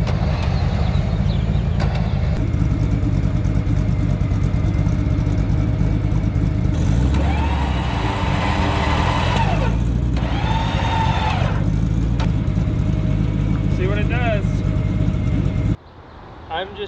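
A truck engine idles with a low, steady rumble outdoors.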